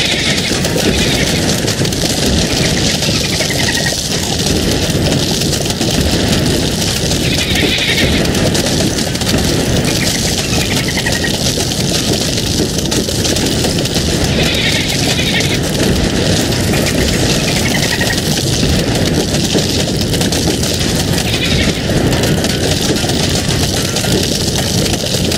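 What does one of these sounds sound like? A dense barrage of cartoonish popping shots rattles on without pause.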